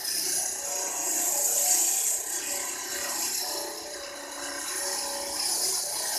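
A floor-cutting machine grinds into concrete.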